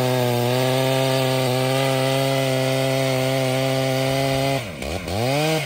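A chainsaw roars steadily while cutting into wood.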